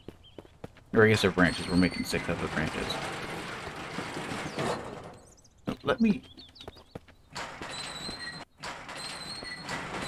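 A wooden door creaks as it swings open.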